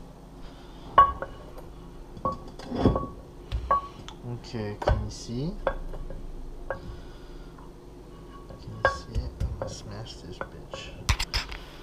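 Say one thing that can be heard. A wooden pestle pounds in a wooden mortar.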